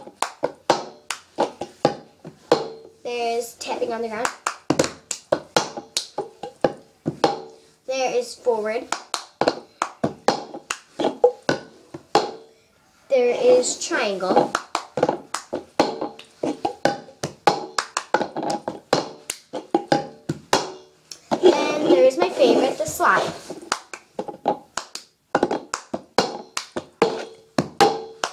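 Hands clap in rhythm.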